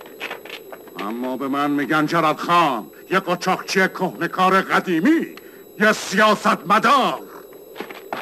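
A man laughs loudly and harshly.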